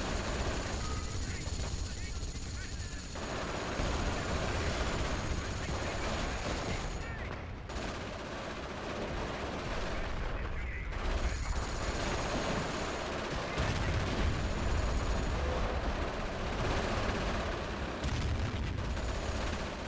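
Gunfire crackles in bursts.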